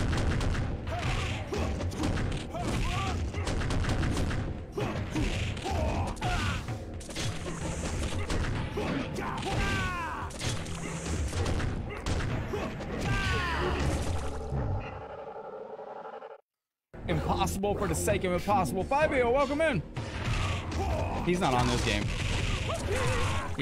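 A man talks with animation through a close microphone.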